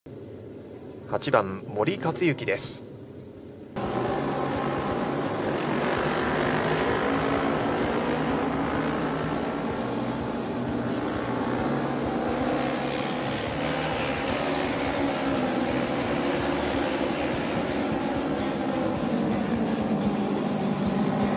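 Motorcycle engines roar as the bikes race around a track.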